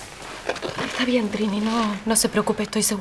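A woman speaks, close by.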